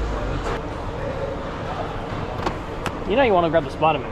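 Plastic game cases clack together as a hand leafs through a stack.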